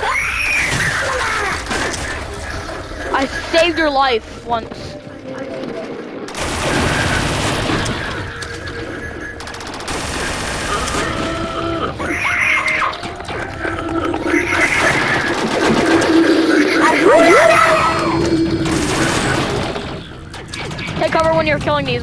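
A game gun fires rapid electronic shots.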